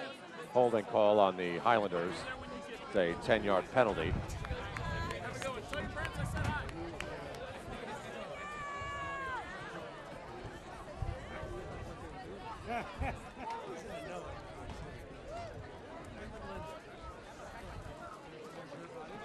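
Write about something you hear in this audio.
Spectators chatter in the stands.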